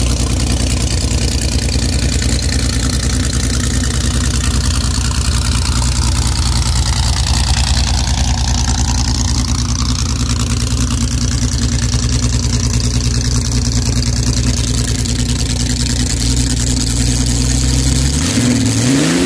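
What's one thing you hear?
A dragster engine idles with a loud, deep rumble.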